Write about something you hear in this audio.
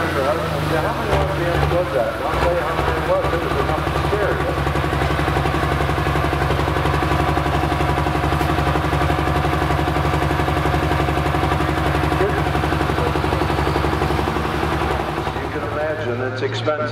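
A loud tractor engine idles with a deep, steady rumble.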